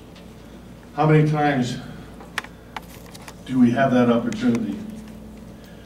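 An elderly man speaks calmly through a microphone in a large room.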